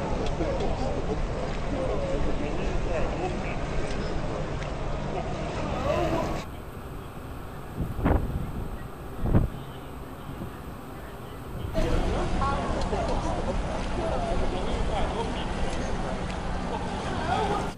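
Many adults and children chatter and call out in the distance, outdoors.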